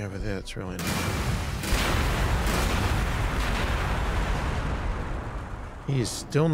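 Weapons fire and explosions rumble in a battle.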